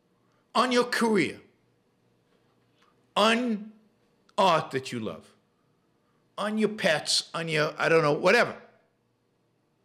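An older man speaks calmly into a close microphone, in short bursts with pauses.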